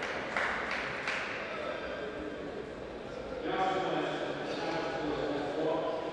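A tennis racket strikes a ball.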